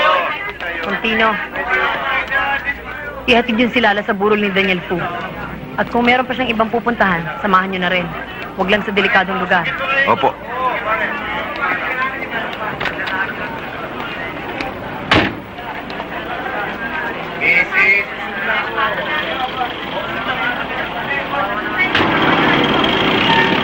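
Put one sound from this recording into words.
A crowd murmurs and calls out outdoors.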